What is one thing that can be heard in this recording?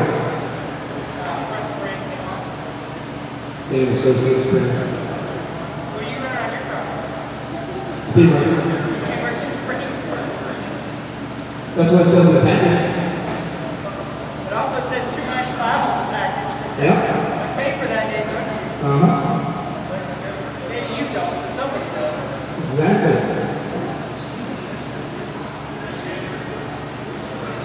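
A man talks in a large echoing hall.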